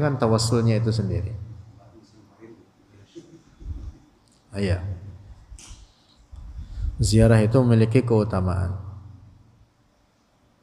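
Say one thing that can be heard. A young man speaks calmly into a close microphone.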